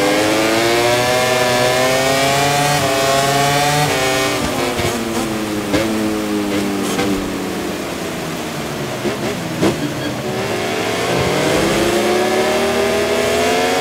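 A motorcycle engine roars at high revs, rising in pitch through each gear, then dropping as it slows for a bend and climbing again.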